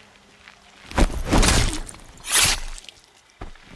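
Sudden heavy blows land in a brief scuffle.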